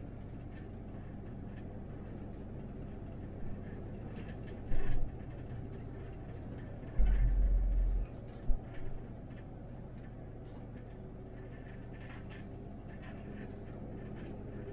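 An articulated city bus drives along a road, heard from the driver's cab.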